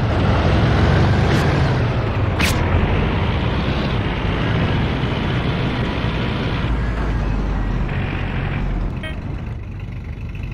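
An open military vehicle's engine rumbles as it drives over rough ground.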